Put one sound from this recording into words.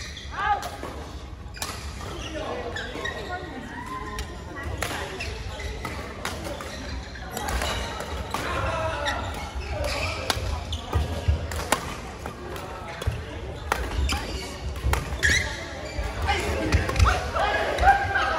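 Voices of young people chatter and call out across a large echoing hall.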